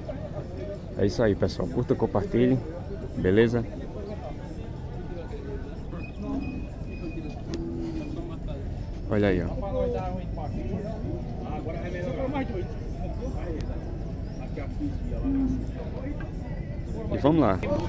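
Cattle low and bellow nearby, outdoors.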